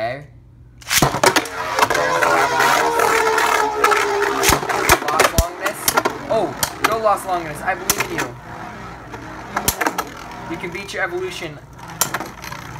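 Spinning tops clash together with sharp clicks.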